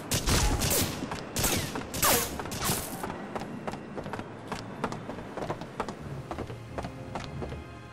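Footsteps thud on wooden boards at a steady walking pace.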